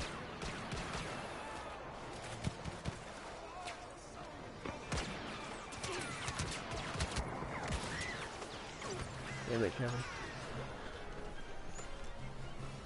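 Laser blasts zip past and explode nearby.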